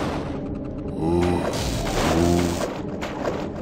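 A heavy energy blast whooshes and crackles.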